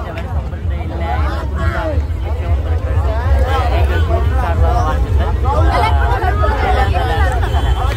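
A young woman speaks with animation close by.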